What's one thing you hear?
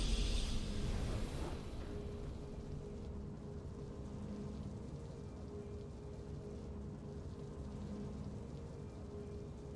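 A soft, steady game tune hums quietly.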